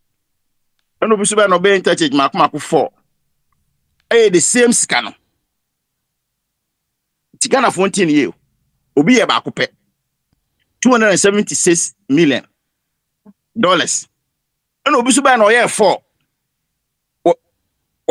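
A man speaks with animation into a microphone, in short bursts.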